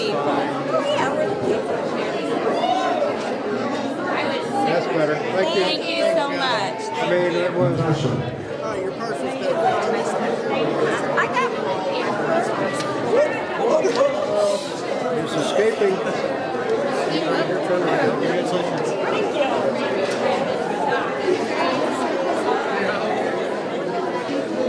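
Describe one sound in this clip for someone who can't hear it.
A crowd of adults chatters in an indoor hall.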